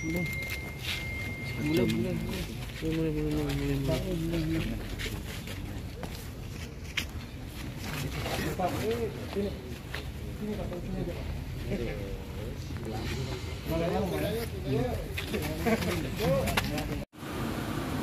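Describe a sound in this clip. Men and women talk casually nearby outdoors.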